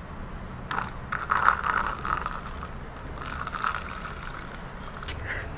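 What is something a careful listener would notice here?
Water pours into a plastic cup.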